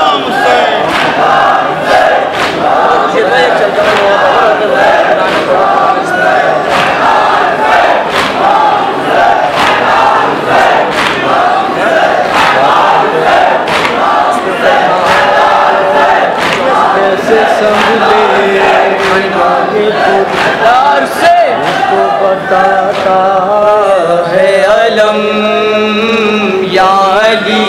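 A large crowd chants along in unison.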